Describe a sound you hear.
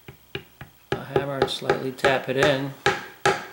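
A mallet taps sharply on a metal part several times.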